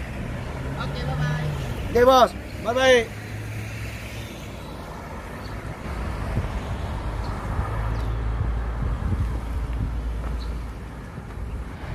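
A car pulls away and drives off into the distance.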